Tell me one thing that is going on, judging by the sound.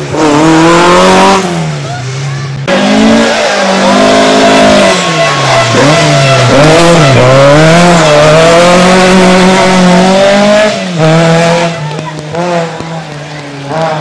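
A rally car engine roars loudly, revving up and down as it shifts gears.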